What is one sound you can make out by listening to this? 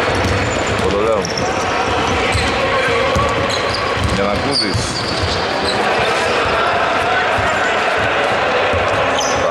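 A basketball bounces with dull thumps on a wooden floor.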